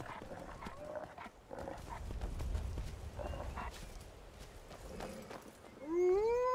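Horse hooves clop steadily on a stone path.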